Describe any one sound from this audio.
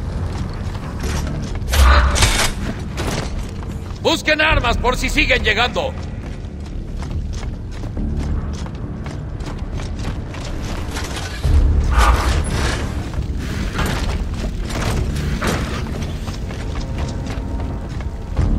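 Heavy boots thud quickly on a hard floor.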